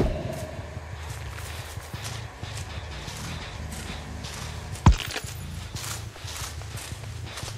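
Tall stalks rustle and swish.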